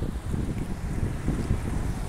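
A van drives by slowly on the road.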